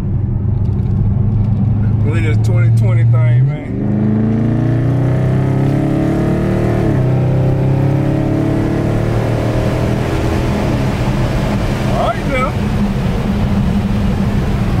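A car engine hums and revs up and down as the car drives along.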